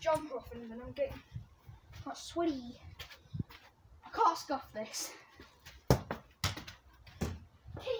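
A boy kicks a ball with dull thuds.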